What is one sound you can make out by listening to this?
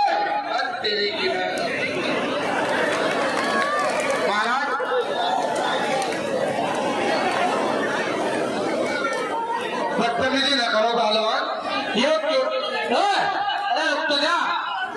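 A man announces loudly and with animation through a microphone and loudspeaker.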